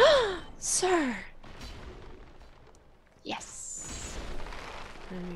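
Swords clash and swing in a video game.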